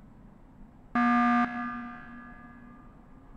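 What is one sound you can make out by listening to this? A loud game alarm blares for an emergency meeting.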